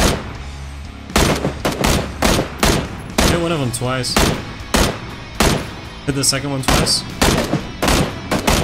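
Rifle shots crack out rapidly in bursts.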